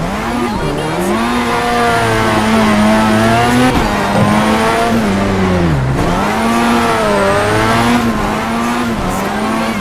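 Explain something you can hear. A car engine revs hard, rising and dipping in pitch as the gears shift.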